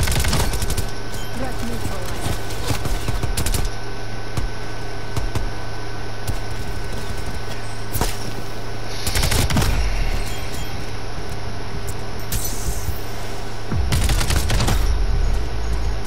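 Rapid gunfire bursts out in sharp volleys.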